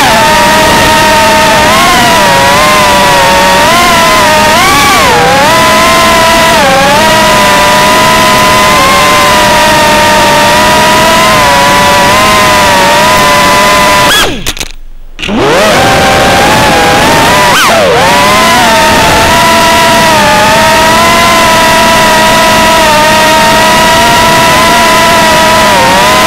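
A small drone's motors whine loudly and shift up and down in pitch.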